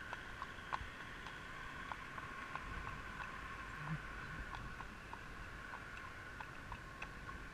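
Horse hooves clop steadily on a paved road.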